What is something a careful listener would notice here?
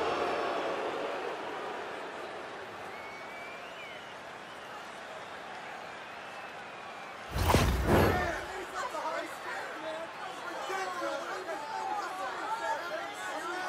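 A large crowd roars in an echoing arena.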